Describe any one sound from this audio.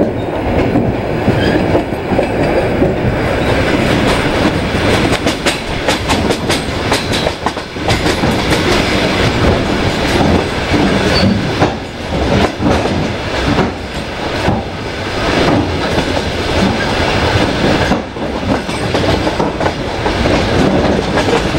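A vehicle rumbles steadily along at speed.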